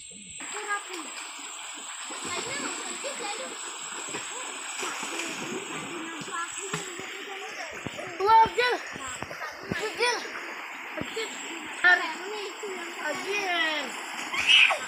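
Children talk and call out excitedly close by, outdoors.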